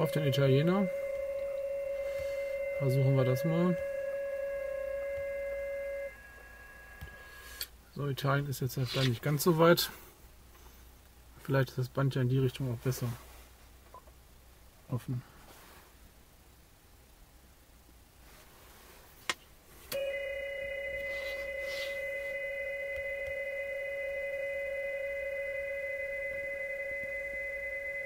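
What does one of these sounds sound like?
Steady tones come from a radio receiver through a small laptop speaker.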